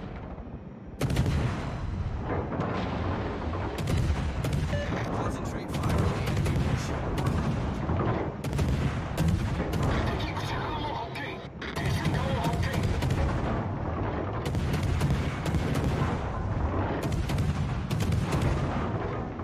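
Anti-aircraft guns fire in rapid, booming bursts.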